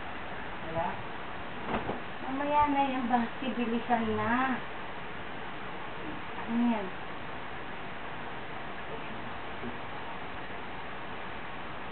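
Cloth rustles as a shirt is pulled on.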